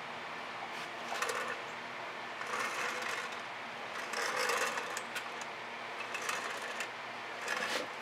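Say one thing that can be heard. A wooden board scrapes and slides across a table in short bursts.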